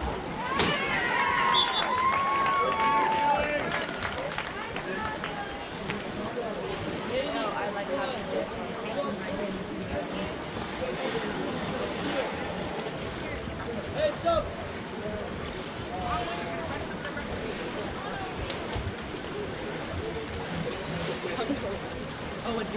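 Water polo players splash through pool water.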